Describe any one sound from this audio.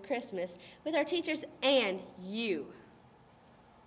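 A young girl speaks into a microphone with animation.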